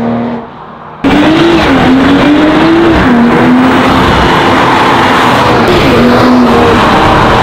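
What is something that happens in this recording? A car speeds past close by with a roaring engine.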